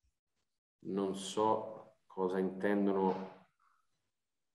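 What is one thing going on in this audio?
A man speaks calmly over an online call.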